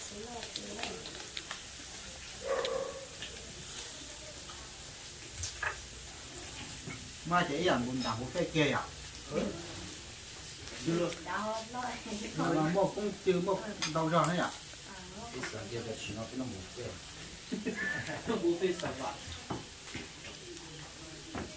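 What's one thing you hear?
Chopsticks and spoons clink against bowls.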